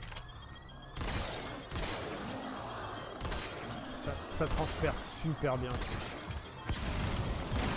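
Sniper rifle shots ring out one after another, each with a sharp crack and echo.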